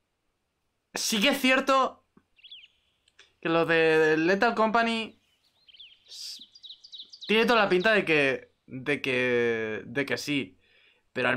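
A young man talks with animation into a close microphone.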